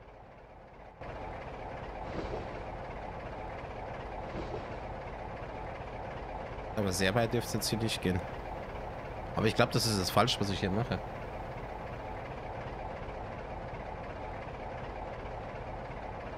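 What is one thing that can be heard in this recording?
A train engine rumbles steadily inside a cab.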